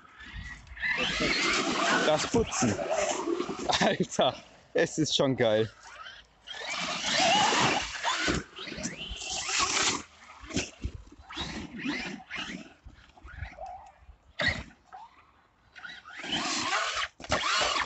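A small toy car's electric motor whirs and whines in bursts.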